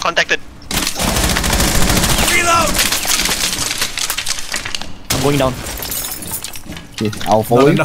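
Rapid gunfire bursts out close by.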